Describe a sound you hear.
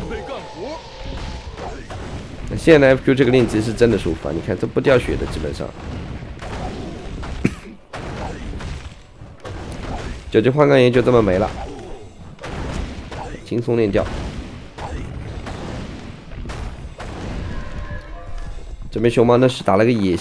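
Weapons clash and spells crackle in a fantasy battle.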